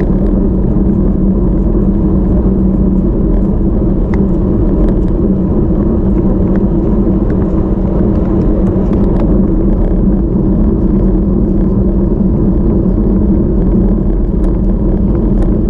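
Wind buffets loudly past a fast-moving bicycle.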